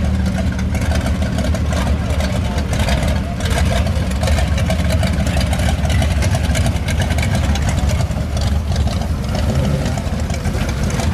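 A second old car's engine rumbles as it rolls past.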